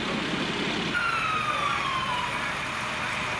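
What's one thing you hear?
A police siren winds down and fades.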